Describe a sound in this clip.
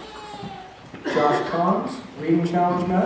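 A man speaks into a microphone, his voice echoing in a large hall.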